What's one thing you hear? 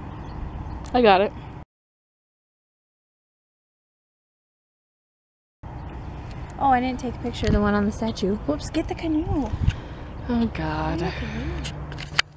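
A young woman talks close by, in a lively way.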